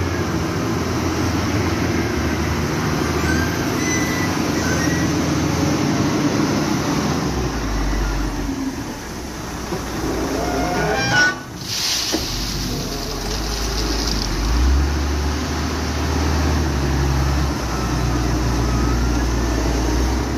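A large diesel engine rumbles and revs nearby.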